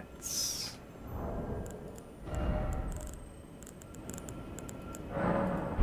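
Short clicks sound in quick succession.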